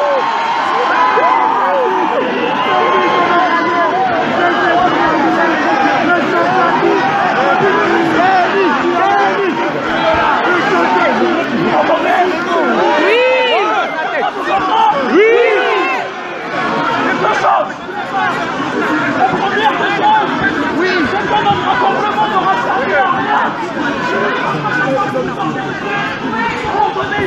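A large crowd outdoors shouts and chants loudly.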